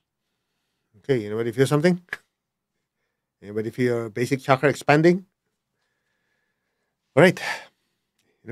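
A middle-aged man speaks calmly and expressively into a close microphone, in short phrases with pauses.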